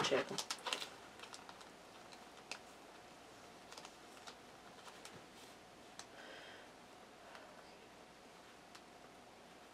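Playing cards rustle and slap softly as they are shuffled by hand.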